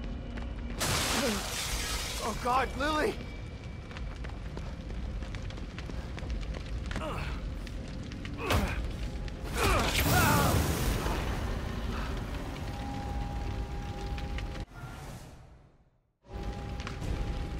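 A fire roars and crackles loudly.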